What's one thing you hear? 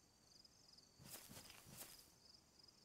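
A rifle clatters and rattles as it is raised.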